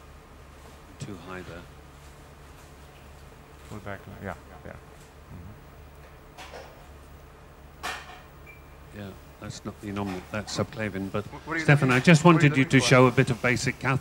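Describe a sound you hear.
A man speaks calmly, with pauses.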